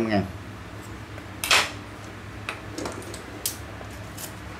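Metal tools clink and rattle as a hand picks them up.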